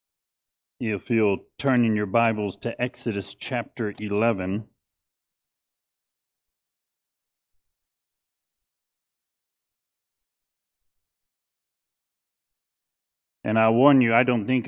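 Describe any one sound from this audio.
A man speaks calmly into a microphone, with a long pause.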